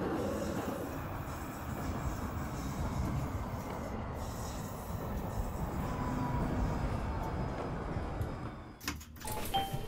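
A tram rumbles along rails.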